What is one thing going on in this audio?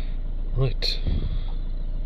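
A finger taps on a touchscreen.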